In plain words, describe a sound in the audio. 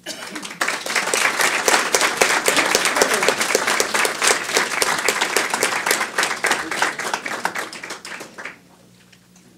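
An audience applauds in a large room, then the clapping dies away.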